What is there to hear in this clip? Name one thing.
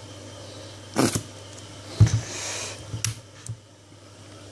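A plastic squeeze bottle sputters as mustard squirts out.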